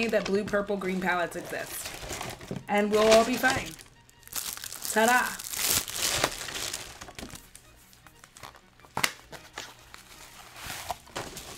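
Cardboard packaging rustles and scrapes in a woman's hands.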